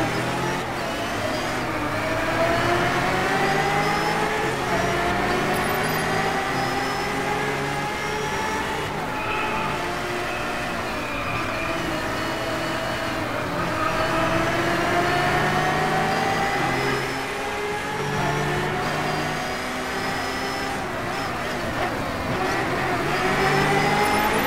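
A racing car engine roars, revving up and dropping as the gears shift.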